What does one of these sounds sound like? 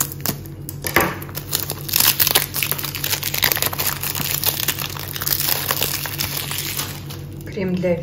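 Plastic wrapping crinkles and rustles as hands peel it off.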